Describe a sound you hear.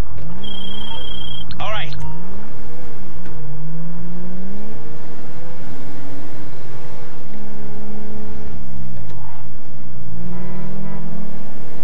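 A car engine revs up and down as the car drives fast.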